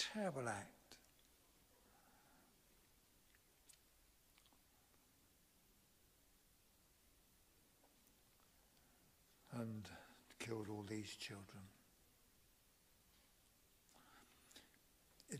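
An elderly man reads aloud slowly into a microphone, with long pauses.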